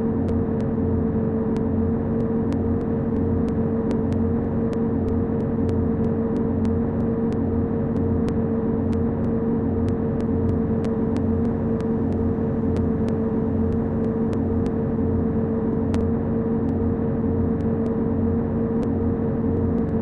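Tyres roll over the road with a steady rumble.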